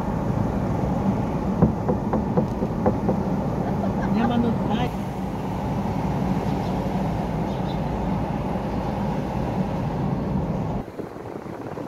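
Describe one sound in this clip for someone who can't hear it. Tyres rumble steadily on a road from inside a moving car.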